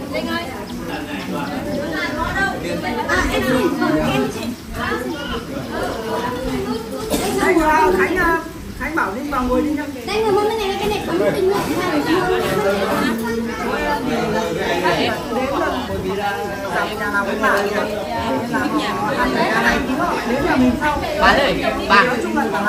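Young men talk and laugh together close by, with lively overlapping voices.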